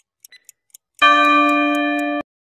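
A bell rings loudly for about a second.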